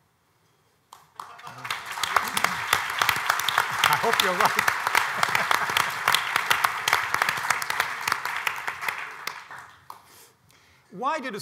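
A large audience applauds and cheers.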